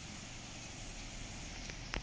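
Water rushes from a sluice into a river.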